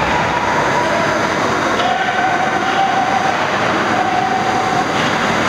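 Ice skates scrape across the ice in an echoing rink.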